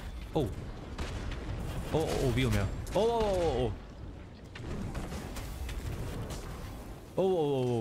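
Gunfire and explosions crackle from a game.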